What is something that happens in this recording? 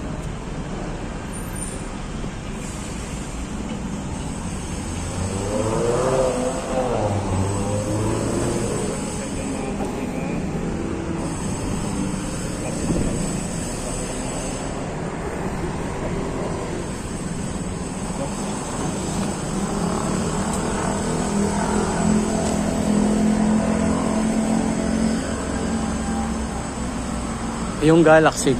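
Outdoors, a steady hum of city traffic comes from nearby.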